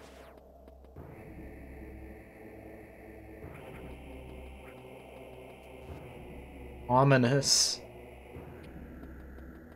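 Soft, moody electronic game music plays steadily.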